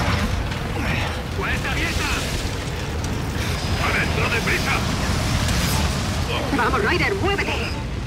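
A low rumble of battle noise runs throughout.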